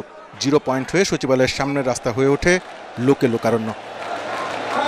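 A crowd of men chants slogans loudly.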